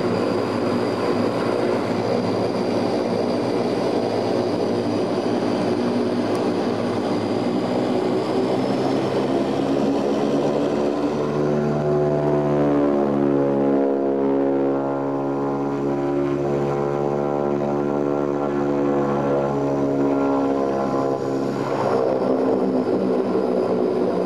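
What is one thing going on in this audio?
Air rushes with a steady roar.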